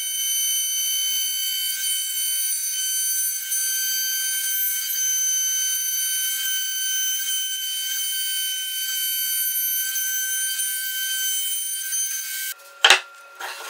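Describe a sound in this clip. A router spins with a steady high whine.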